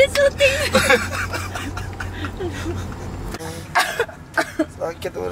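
A young woman shrieks with laughter up close.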